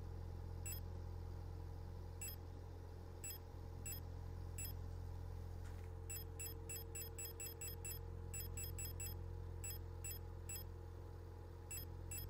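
Short electronic menu ticks click repeatedly, speeding up into quick runs.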